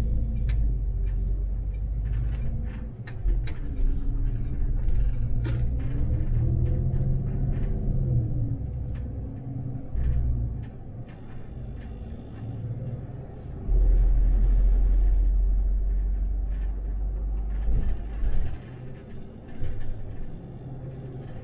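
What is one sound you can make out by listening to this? A city bus engine hums, heard from inside the cab as the bus drives along.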